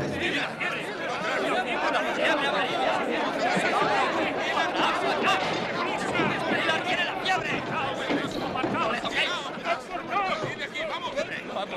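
A crowd of men talks and shouts excitedly all around.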